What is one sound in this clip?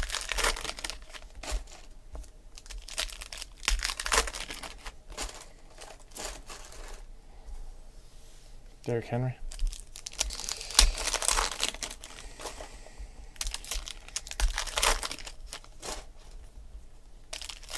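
Foil card wrappers crinkle and rustle as they are torn open.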